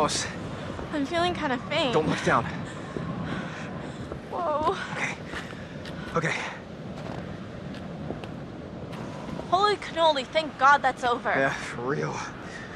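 A young woman speaks breathlessly with relief.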